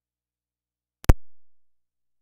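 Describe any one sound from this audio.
A patch cable clicks sharply into a socket.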